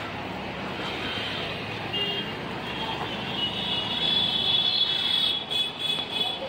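Traffic hums steadily along a busy street outdoors.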